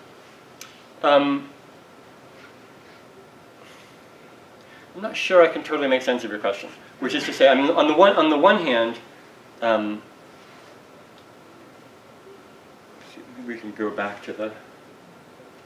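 An older man speaks in short bursts, lecturing calmly.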